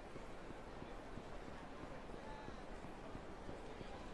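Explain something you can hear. Footsteps run quickly along a street.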